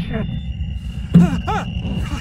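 A hand slaps against a car window.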